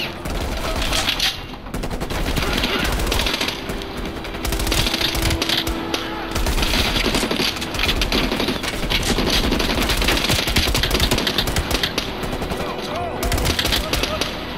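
An automatic rifle fires rapid bursts close by.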